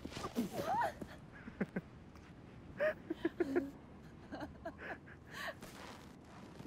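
A young woman speaks and laughs brightly nearby.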